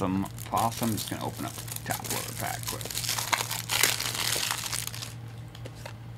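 Plastic wrapping crinkles and tears as a pack is opened.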